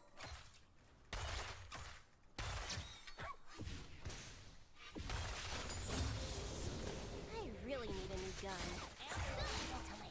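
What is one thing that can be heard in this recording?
Game effects clash and whoosh.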